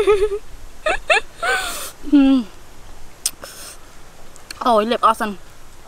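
A young woman talks expressively, close by.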